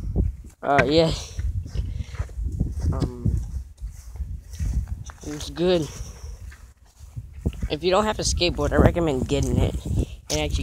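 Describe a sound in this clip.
A boy talks with animation very close to the microphone.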